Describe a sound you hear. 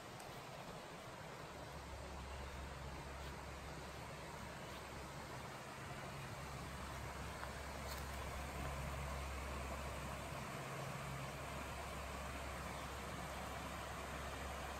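A small stream rushes and splashes over rocks, growing louder as it comes closer.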